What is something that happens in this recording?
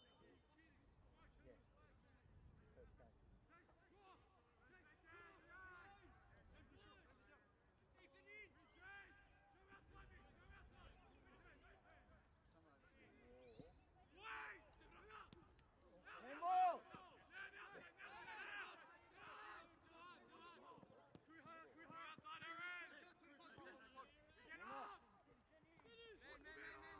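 Young women shout and call to each other across an open field.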